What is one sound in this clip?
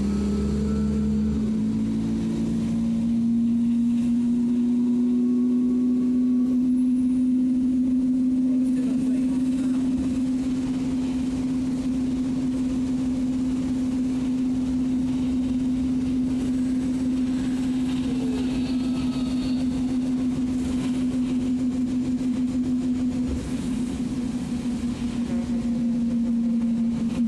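The bus rattles and shakes as it rolls over the road.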